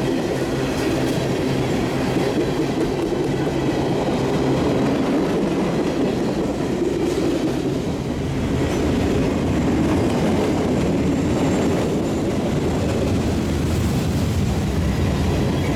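Steel wheels clack and squeal on the rails.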